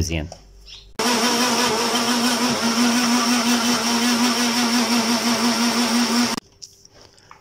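A blender motor whirs loudly and steadily, then stops.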